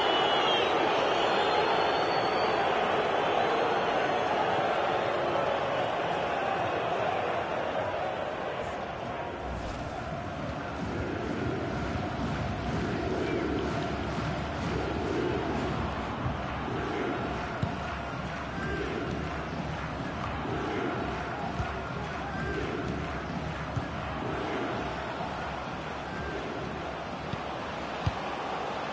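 A large stadium crowd roars loudly, then settles.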